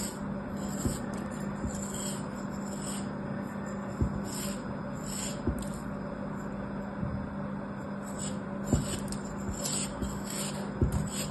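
A blade slices through packed sand with soft, gritty scraping.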